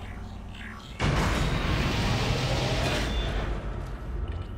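A heavy metal door rumbles and slides open.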